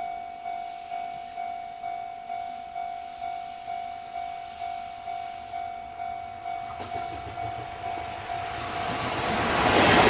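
A level crossing bell rings in a steady, rapid pulse.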